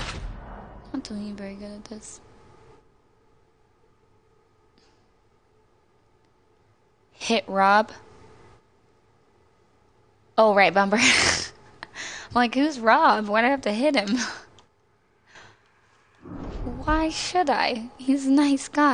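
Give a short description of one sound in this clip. A young woman talks with animation into a nearby microphone, in bursts.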